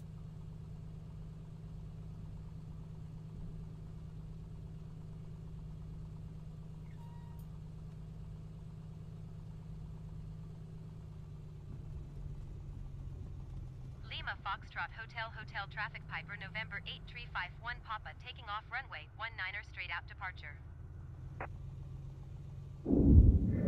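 A single-engine piston propeller plane drones.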